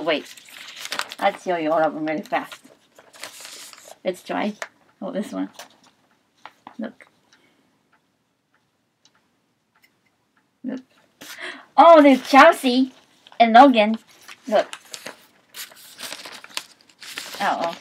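Newspaper pages rustle and crinkle.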